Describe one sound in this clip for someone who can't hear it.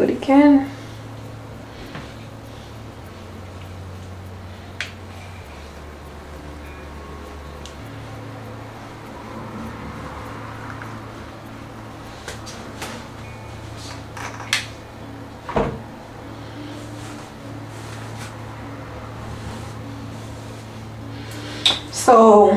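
A young woman speaks briefly and close by.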